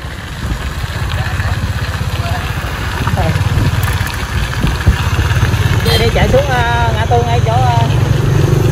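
A motorbike engine rumbles steadily nearby.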